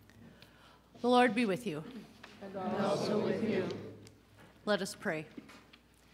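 An elderly woman speaks expressively into a microphone.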